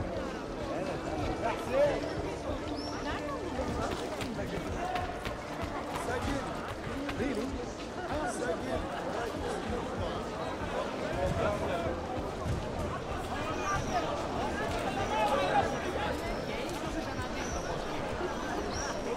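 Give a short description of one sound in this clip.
A busy crowd chatters and murmurs all around.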